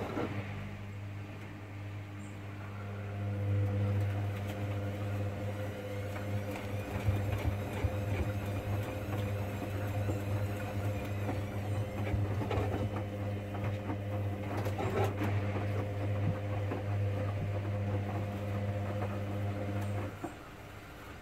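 Laundry and water slosh and tumble inside a washing machine drum.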